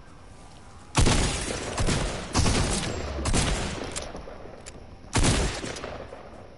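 Shotgun blasts boom in quick succession, close by.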